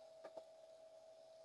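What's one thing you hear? A fork taps against a pan.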